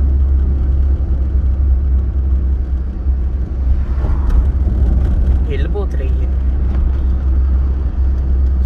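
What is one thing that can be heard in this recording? Tyres roll on smooth pavement.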